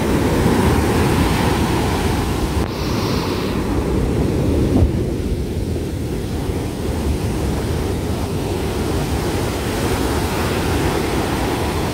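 Foaming surf washes up onto the sand with a hiss.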